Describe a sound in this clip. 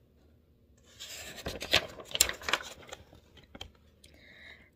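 Paper pages rustle and flip as a book page is turned.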